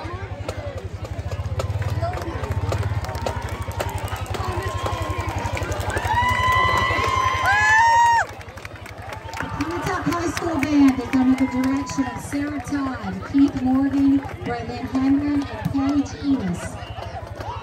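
A marching band's brass plays loudly outdoors.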